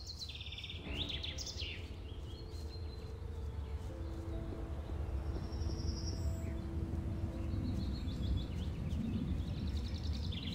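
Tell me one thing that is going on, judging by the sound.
Footsteps run steadily along a dirt path.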